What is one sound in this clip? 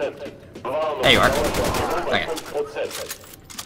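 A machine gun fires a loud rapid burst.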